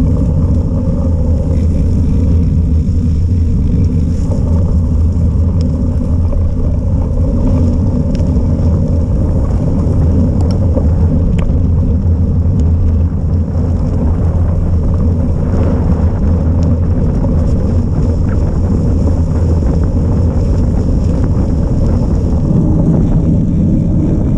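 Bicycle tyres hum on a paved path.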